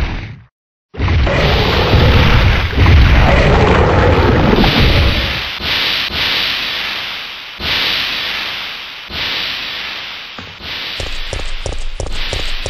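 Flames crackle and hiss.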